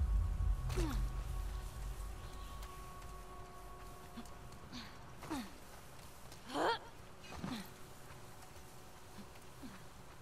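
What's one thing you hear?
Feet swish through tall grass and leafy plants.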